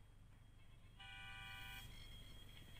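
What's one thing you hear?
A game plays a bright rising chime.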